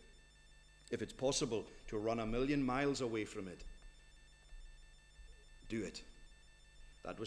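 A middle-aged man speaks slowly and earnestly through a microphone.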